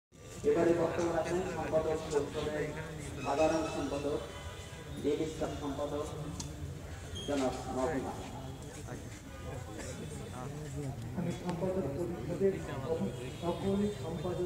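A large crowd of men murmurs and talks outdoors.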